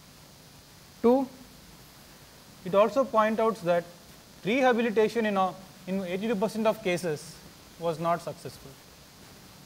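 A man speaks calmly, heard through a microphone.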